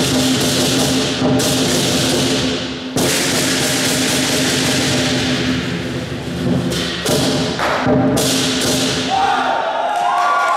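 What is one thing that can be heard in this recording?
Drums pound and cymbals crash loudly in a large echoing hall.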